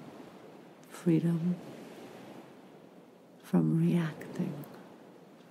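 A woman speaks briefly and softly close by.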